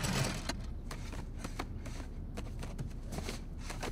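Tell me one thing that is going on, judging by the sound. Folders slide and scrape in a metal drawer.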